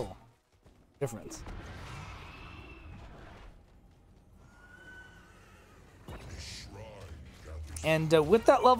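Magic spells whoosh and crackle during a fantasy battle.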